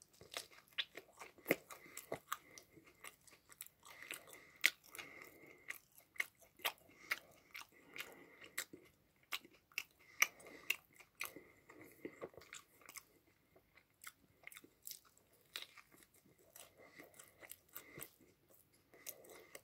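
Crisp food crunches loudly as a young man chews.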